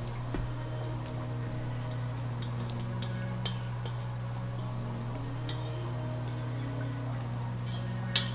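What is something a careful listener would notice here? A spatula scrapes soft dough from a metal bowl.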